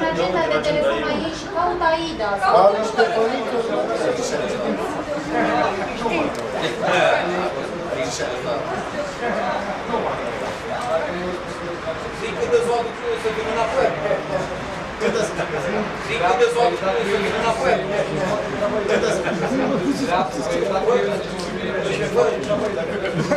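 Several men talk over one another nearby.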